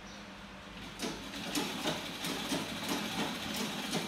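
A sewing machine rattles in short bursts.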